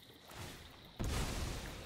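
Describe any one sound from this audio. A game's magical whoosh sounds as a card is played.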